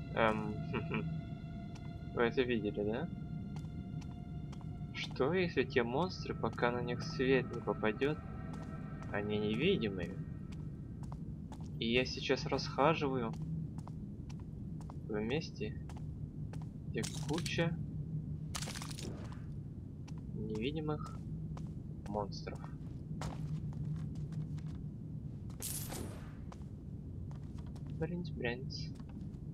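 Footsteps tap slowly on a hard tiled floor.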